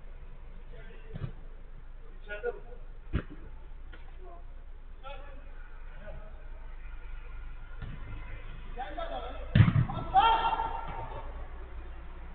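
Young men shout and call out to each other across a football pitch.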